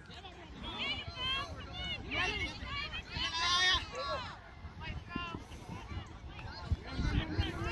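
Young players shout to each other outdoors on an open field.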